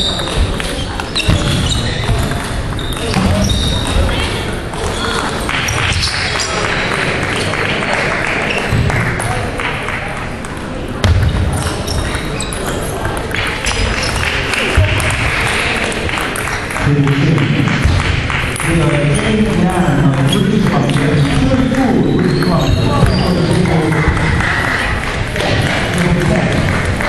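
A ping-pong ball clicks back and forth off paddles and a table in an echoing hall.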